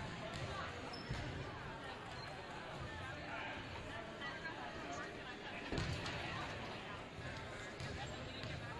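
Young players chatter and call out in a large echoing gym.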